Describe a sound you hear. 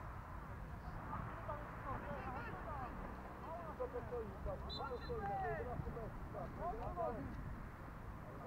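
Football players shout to each other across a field in the distance.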